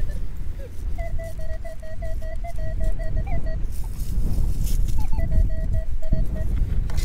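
A metal detector beeps in quick repeated tones.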